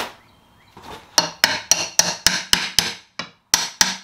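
A metal pry bar scrapes and knocks against wood.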